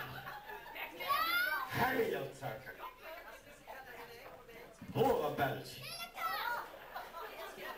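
A young child shouts excitedly.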